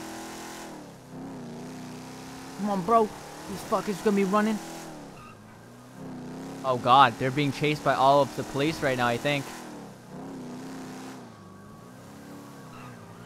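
A car engine hums and rises and falls in pitch as the car drives.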